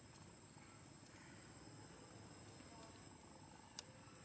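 A young monkey chews on food.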